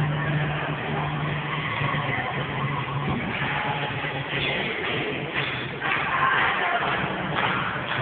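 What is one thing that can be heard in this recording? Shoes stamp and tap dance steps on a wooden floor.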